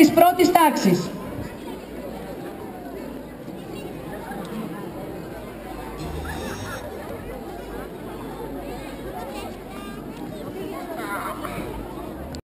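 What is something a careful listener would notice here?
A seated crowd murmurs and chatters quietly.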